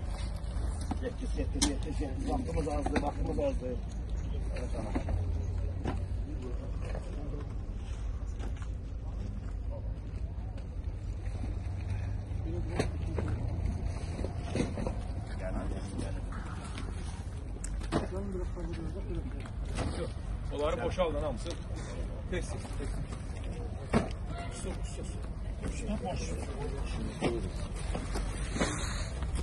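Men talk nearby outdoors, with voices coming and going.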